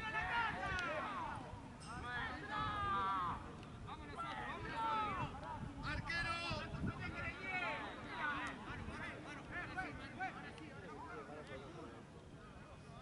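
Young men shout and call to each other across an outdoor pitch.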